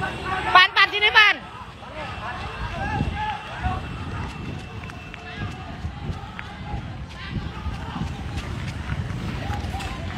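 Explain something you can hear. Footsteps slap on pavement as people run.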